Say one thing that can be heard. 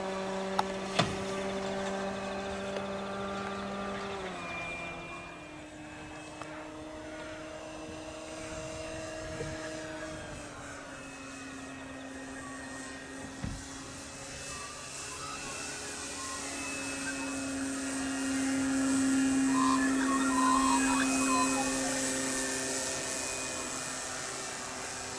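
A small propeller plane drones overhead, its engine pitch shifting as it passes and growing louder as it comes closer.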